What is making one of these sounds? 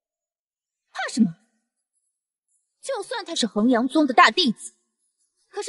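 A young woman speaks casually and dismissively, close by.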